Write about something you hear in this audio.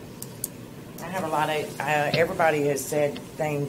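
A middle-aged woman speaks calmly into a microphone in a large room.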